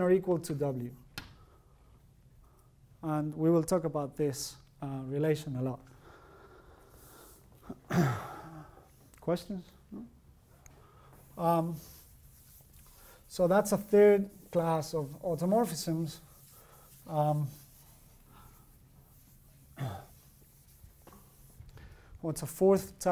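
A man speaks calmly, pausing now and then.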